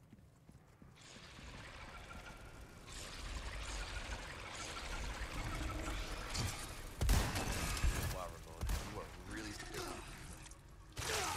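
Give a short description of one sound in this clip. A monstrous creature screeches and growls loudly.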